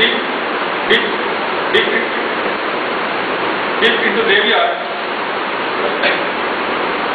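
A man speaks with animation, heard from a distance in an echoing room.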